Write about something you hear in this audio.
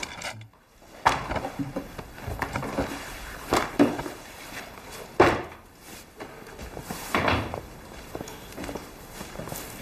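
A man shakes and rustles a heavy fur coat.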